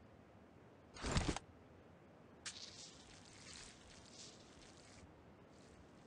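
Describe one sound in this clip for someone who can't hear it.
A syringe injection hisses and clicks.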